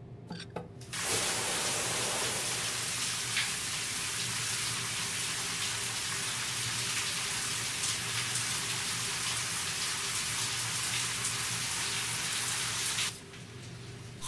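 Shower water sprays and splashes steadily.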